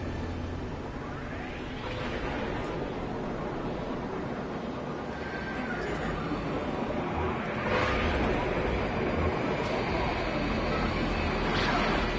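A spaceship engine roars steadily and grows slowly louder.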